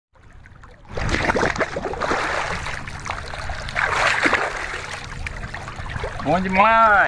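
Water splashes close by.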